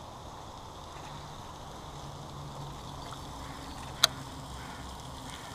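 A fishing reel whirs softly as line is wound in.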